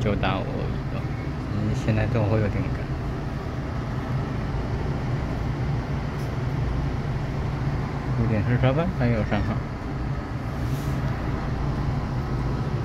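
Rain patters on a train window.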